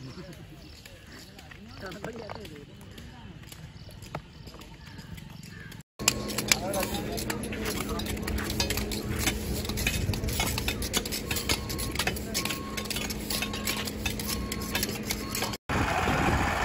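Brooms and rakes scrape across the ground.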